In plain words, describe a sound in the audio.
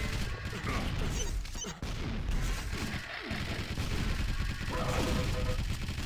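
Gunfire crackles rapidly in a fast action game.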